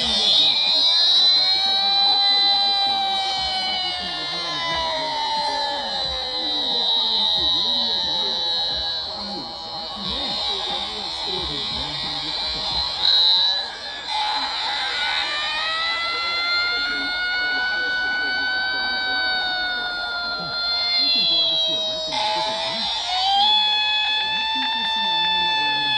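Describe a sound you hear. A deep, goofy character voice sings a slow, drawn-out song through a small speaker.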